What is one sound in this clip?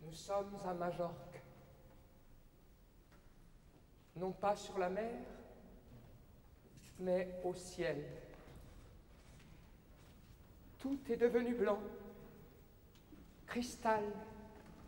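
A man declaims loudly and dramatically in short bursts, in a reverberant space.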